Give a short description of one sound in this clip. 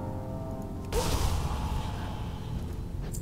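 A magic spell zaps with a bright whoosh.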